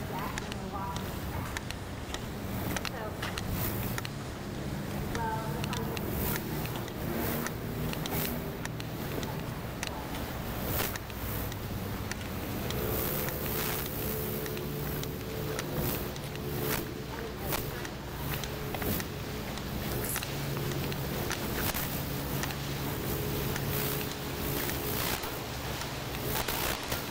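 A motorboat engine hums steadily and grows nearer.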